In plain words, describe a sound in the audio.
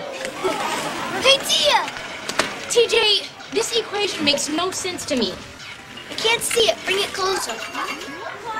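A boy talks excitedly and laughs.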